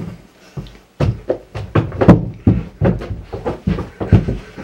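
A young man laughs into his hand.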